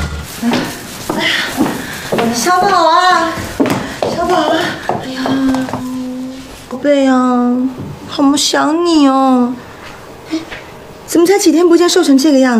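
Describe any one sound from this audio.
A woman speaks warmly and with animation close by.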